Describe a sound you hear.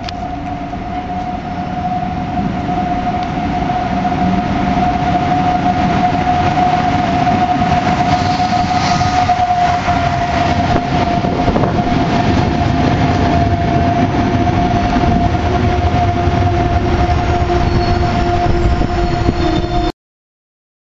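A train rumbles in, growing louder as it comes close.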